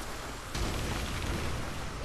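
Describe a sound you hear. Fire bursts with a low roar.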